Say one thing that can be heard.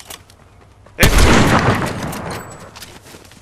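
A rifle shot cracks loudly and echoes away.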